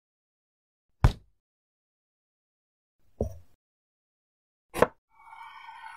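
A knife chops into a squash on a wooden board.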